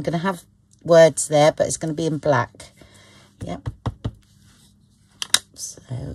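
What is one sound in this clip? A rubber stamp taps against an ink pad.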